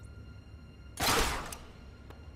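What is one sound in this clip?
A grappling gun fires with a sharp whoosh.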